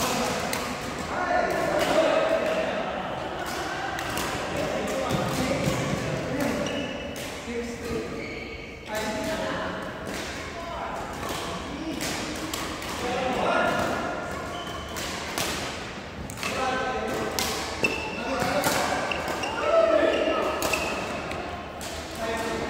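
Shoes squeak on a sports floor.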